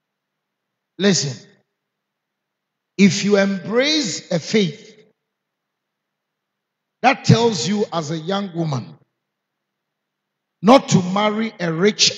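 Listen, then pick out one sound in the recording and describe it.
A man preaches with animation into a microphone, in bursts with pauses.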